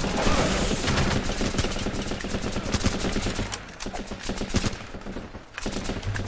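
Rapid gunshots crack repeatedly.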